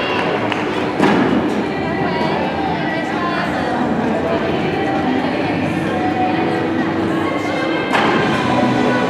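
Feet thump on a balance beam as a gymnast lands.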